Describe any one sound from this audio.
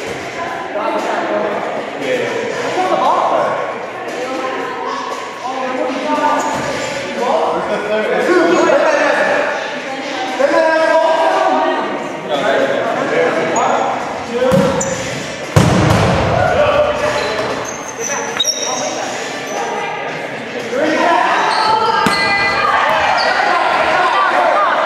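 Young people talk and shout in a large echoing gym.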